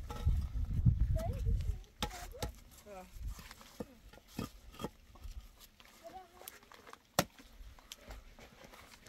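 Concrete blocks knock and scrape against each other.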